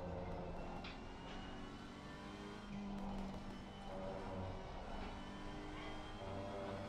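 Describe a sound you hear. A racing car engine roars steadily at high revs.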